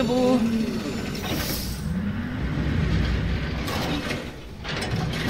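A heavy metal door mechanism rumbles and grinds as it turns.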